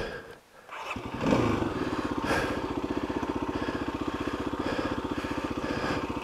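A motorcycle engine idles close by with a steady rumble.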